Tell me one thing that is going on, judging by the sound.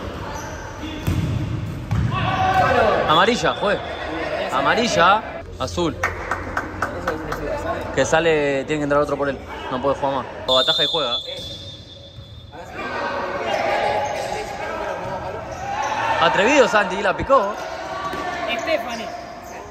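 Young men shout to each other across an echoing indoor court.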